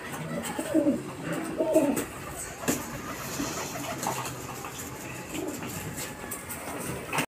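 Pigeon wings flap and flutter.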